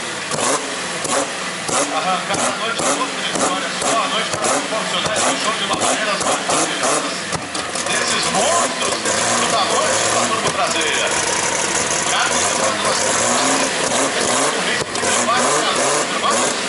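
A race car engine pops and crackles with sharp bangs.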